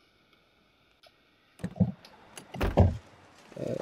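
A car door clicks open and thuds.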